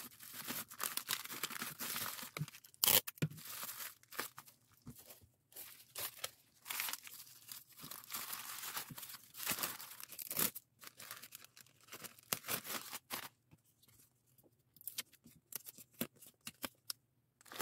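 Small clicks and taps sound as packages are handled.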